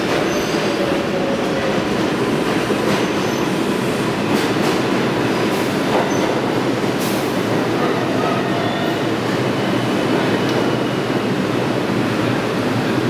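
A subway train rumbles and rattles loudly along the track.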